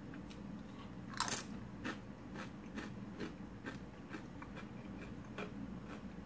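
A woman chews crunchy tortilla chips close to a microphone.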